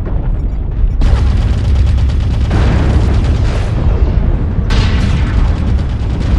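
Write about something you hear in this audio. Cannons fire in loud roaring bursts with explosions.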